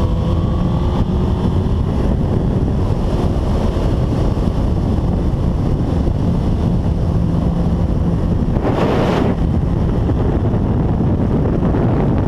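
A motorcycle engine roars at high speed.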